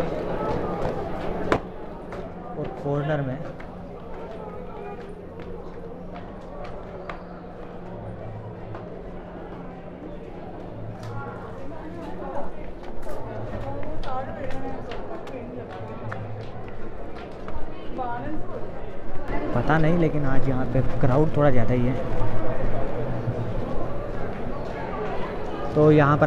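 Men and women talk nearby.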